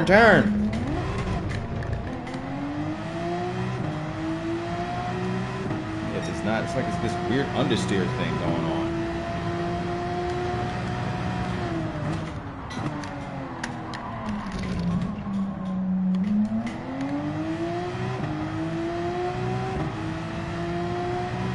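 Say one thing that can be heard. A racing car engine roars, rising in pitch as it speeds up and dropping as it brakes for a corner.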